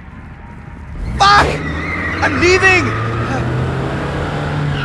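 A van engine rumbles as the van drives away.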